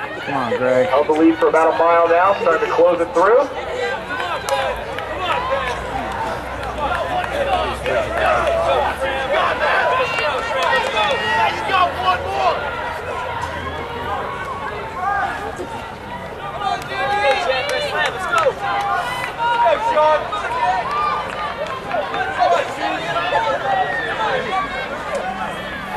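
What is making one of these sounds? Young men and women chatter and call out nearby outdoors.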